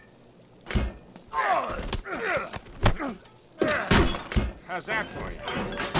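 A man grunts and shouts while fighting.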